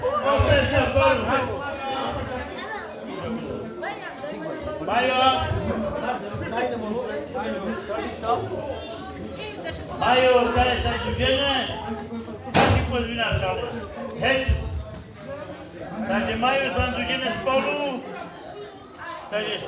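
A middle-aged man speaks with animation into a microphone over a loudspeaker.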